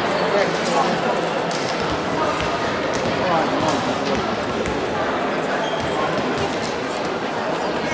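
A volleyball thumps as players strike it.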